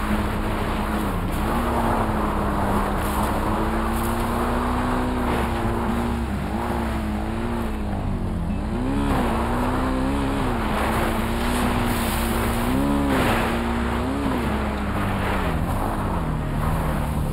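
A dirt bike engine hums steadily and revs up and down.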